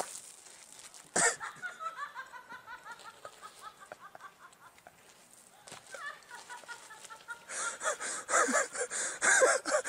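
A goat's hooves scuff and scrape on gravel as the goat stumbles and falls.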